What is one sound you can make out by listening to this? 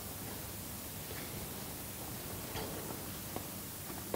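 A man sits down on a creaking chair in a large echoing room.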